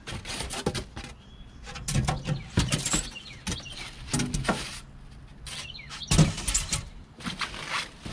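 Foam sheets scrape and squeak against cardboard.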